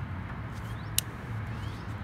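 A small plastic part clicks as it is twisted.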